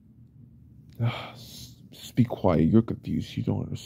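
A young man gasps and speaks tensely, close by.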